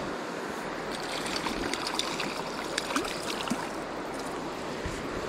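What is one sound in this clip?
A hooked fish splashes at the water's surface.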